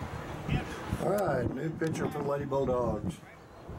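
Teenage girls call out to one another on an outdoor field.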